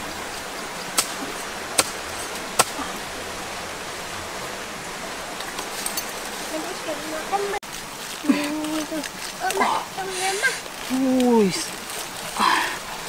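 A knife cuts through palm stems with sharp clicks.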